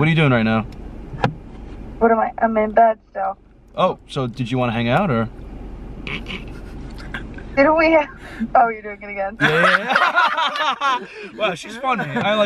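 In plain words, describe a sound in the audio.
Several young men shout and laugh loudly in a car.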